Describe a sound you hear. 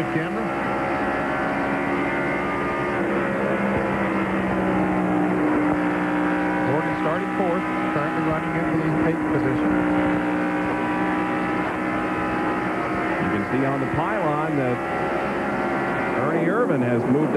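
A race car engine roars steadily at high speed from close by.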